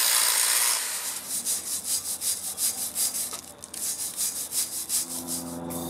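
A wire brush scrubs metal with quick rasping strokes.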